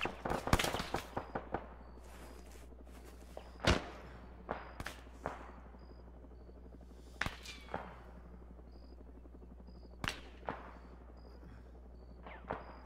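Gunshots crack in scattered bursts and echo away.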